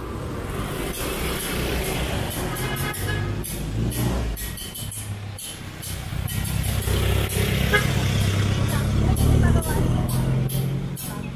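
Motorcycle engines putter past close by.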